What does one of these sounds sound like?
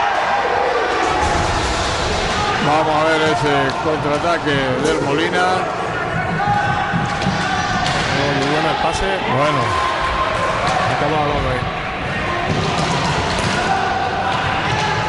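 Roller skates rumble across a wooden floor in a large echoing hall.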